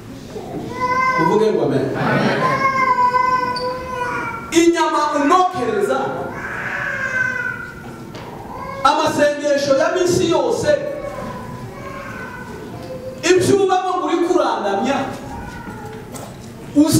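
A man preaches with passion through a microphone, his voice echoing in a large hall.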